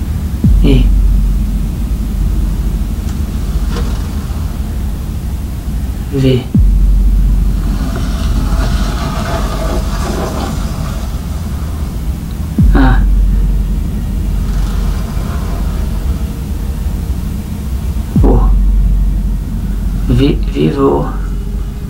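A young man speaks slowly and quietly, close by.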